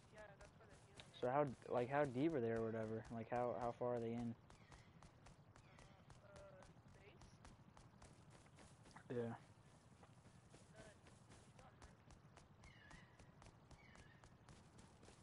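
Footsteps crunch steadily on gravel and grass.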